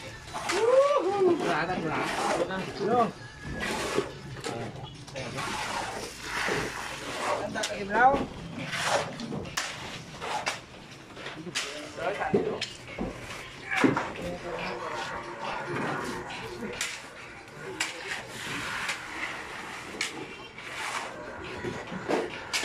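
A shovel scrapes through gravel and cement.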